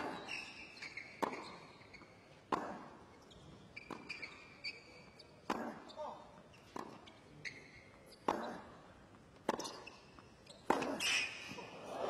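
Tennis balls are struck hard with rackets in a long rally.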